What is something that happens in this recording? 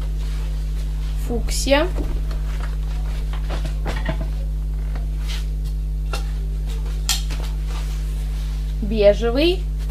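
A stiff sheet of leather rustles and flaps as it is waved close by.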